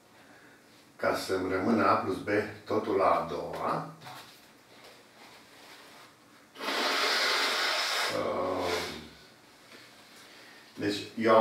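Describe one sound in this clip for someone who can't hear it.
An elderly man speaks calmly nearby, with pauses.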